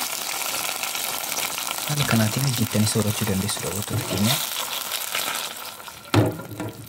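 Onions sizzle and bubble in a hot pan.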